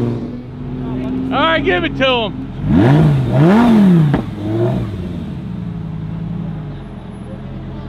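A sports car engine revs sharply in short bursts while idling.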